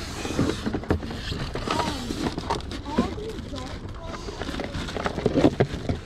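Plastic game cartridges clatter in a cardboard box.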